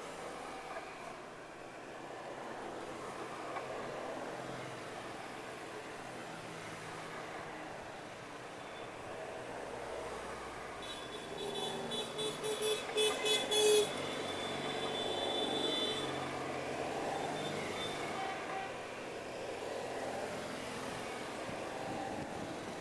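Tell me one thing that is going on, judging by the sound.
Small old car engines hum and putter as cars pass by one after another.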